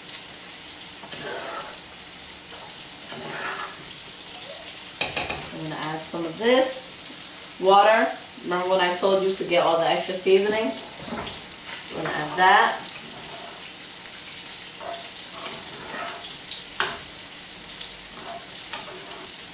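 A spoon clinks against a pot.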